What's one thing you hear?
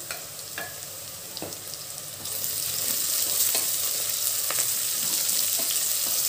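A spatula scrapes and knocks against the metal pot while stirring.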